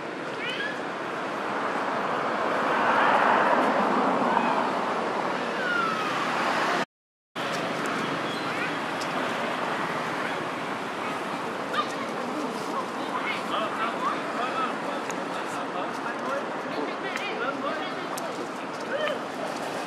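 Baby monkeys squeak and chirp close by.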